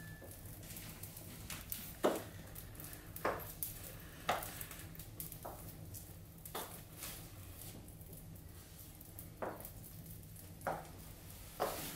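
Heavy footsteps thud across a hard floor.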